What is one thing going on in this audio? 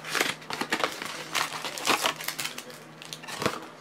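A cardboard box scrapes and rustles as it is opened.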